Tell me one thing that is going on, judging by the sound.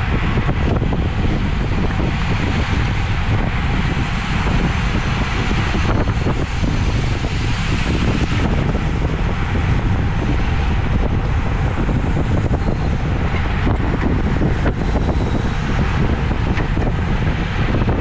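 Strong wind rushes and buffets loudly past.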